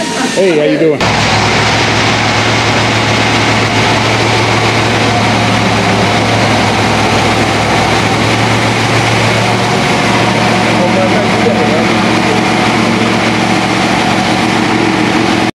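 An engine runs on a test stand with a steady, loud drone.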